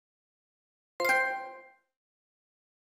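A short bright chime rings and fades.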